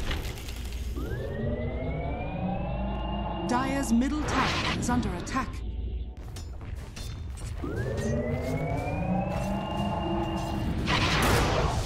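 A magic spell charges up with a rising, ringing hum.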